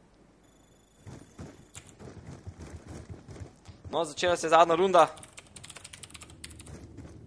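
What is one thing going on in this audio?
Footsteps patter quickly on hard floors.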